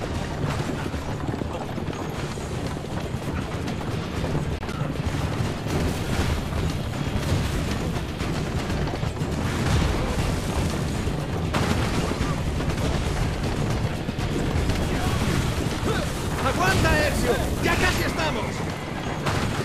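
Horses' hooves pound on the ground.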